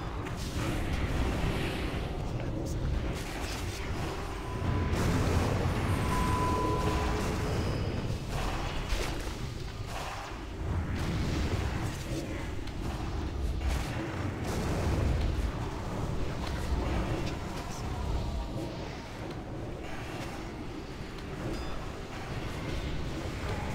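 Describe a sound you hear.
Magic blasts and weapon clashes boom and crackle in a busy fight.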